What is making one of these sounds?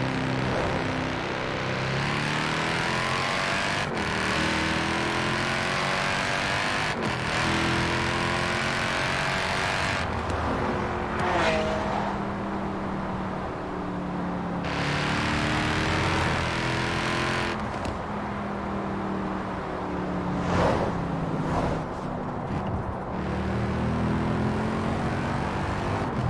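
A sports car engine roars as it speeds up and changes gears.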